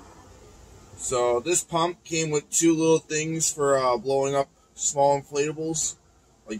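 A man speaks close up, calmly explaining.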